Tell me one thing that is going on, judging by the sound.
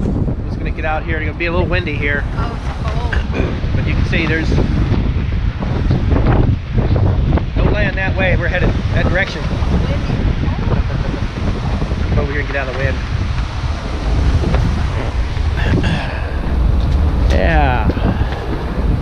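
A middle-aged man talks casually, close to the microphone.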